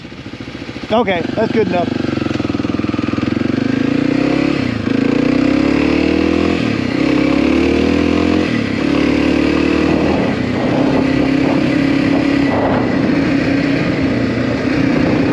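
A motorcycle engine drones steadily while riding, rising and falling with the throttle.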